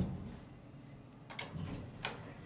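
A finger presses an elevator button with a click.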